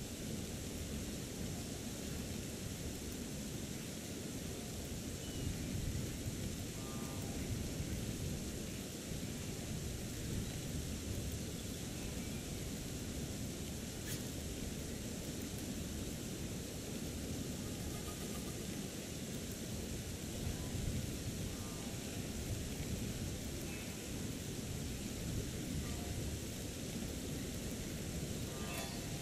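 Water rushes steadily nearby.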